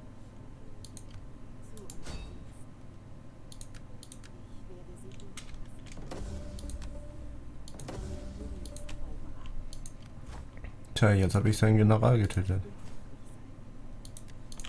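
Short soft clicks sound now and then.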